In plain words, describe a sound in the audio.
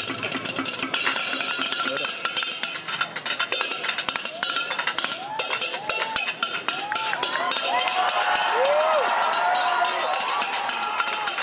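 Metal percussion clashes and jingles rapidly in a lively rhythm.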